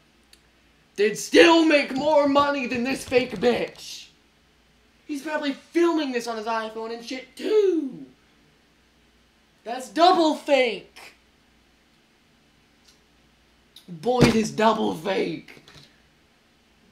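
A young person speaks with animation close to a microphone, in short bursts.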